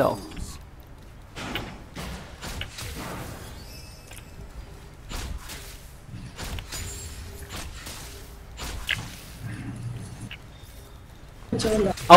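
Game combat sounds of swords clashing and spells bursting come in quick, sharp hits.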